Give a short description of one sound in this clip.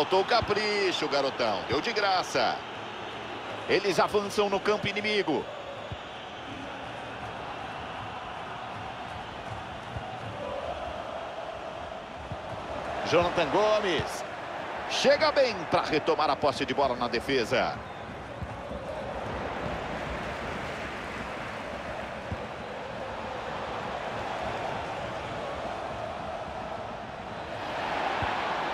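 A large crowd murmurs and chants steadily in a stadium.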